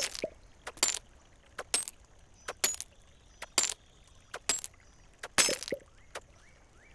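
A pickaxe strikes rock with sharp, repeated knocks.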